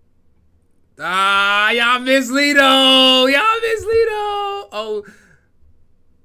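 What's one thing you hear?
A young man laughs loudly and shrieks into a microphone.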